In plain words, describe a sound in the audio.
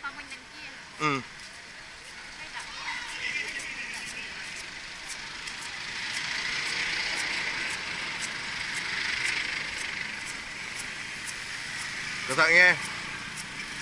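A car horn honks loudly.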